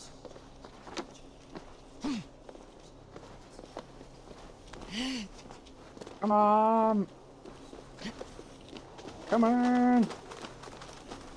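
A climber's hands and boots scrape and tap on stone.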